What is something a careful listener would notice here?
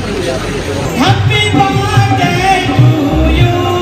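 An elderly woman sings into a microphone through loudspeakers.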